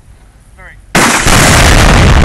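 A rifle shot sets off a binary explosive target with a huge blast.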